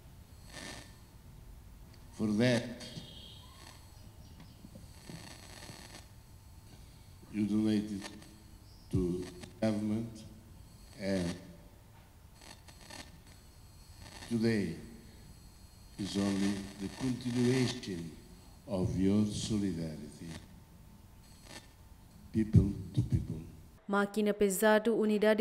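An elderly man speaks slowly into a microphone, heard through a loudspeaker outdoors.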